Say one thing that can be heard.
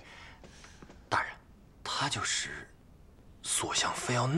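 A man calls out respectfully, close by.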